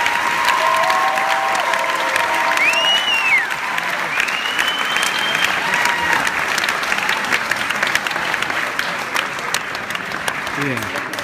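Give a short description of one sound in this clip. A large audience murmurs and chatters.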